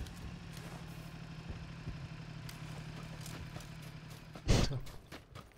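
A motorcycle engine hums steadily at idle.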